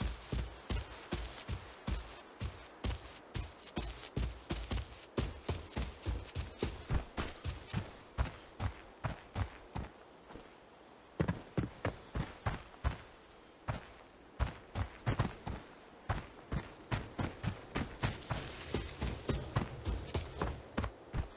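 Quick footsteps thud steadily on the ground.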